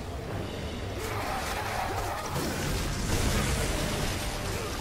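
Blades slash and clash in a fight.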